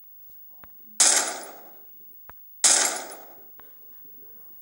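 Two loud gunshots ring out, each followed by a short echo.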